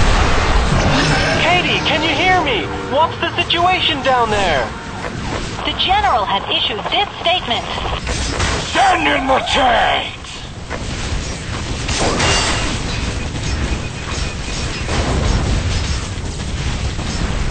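Game laser weapons zap and whine.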